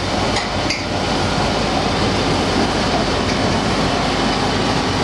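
A large engine clanks and hums steadily in a loud echoing room.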